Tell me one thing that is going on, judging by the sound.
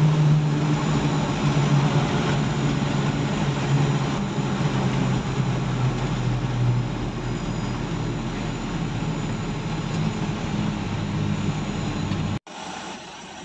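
A vehicle engine hums steadily while driving on a road.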